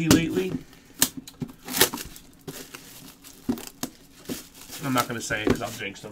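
Plastic card wrappers crinkle and rustle.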